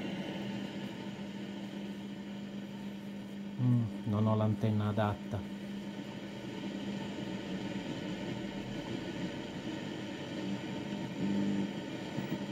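An old radio hums steadily.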